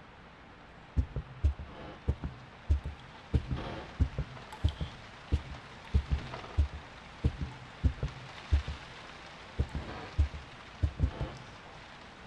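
Slow footsteps thump heavily on a wooden floor indoors.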